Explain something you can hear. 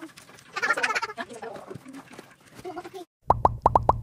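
A toddler squeals and babbles.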